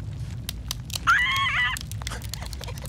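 A cartoon bird squawks.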